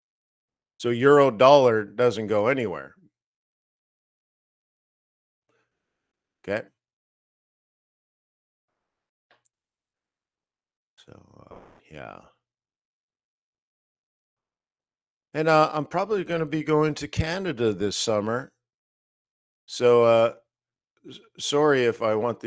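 A middle-aged man talks calmly into a close microphone over an online call, with pauses.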